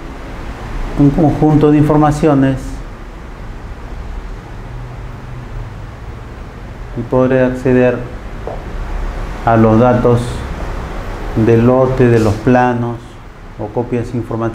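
A man speaks calmly, heard through a microphone.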